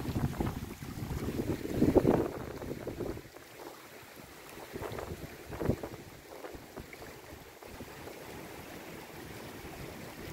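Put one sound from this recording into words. Small waves lap gently against a pebble shore.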